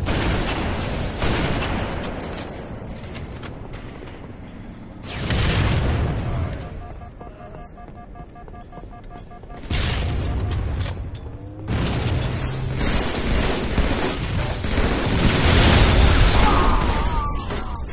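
Rapid gunfire bursts out loudly in short volleys.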